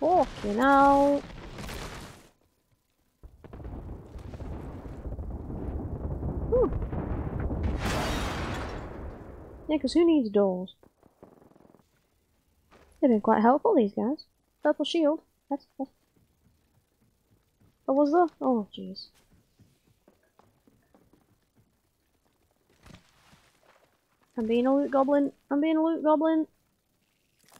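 A young woman talks with animation into a headset microphone, close by.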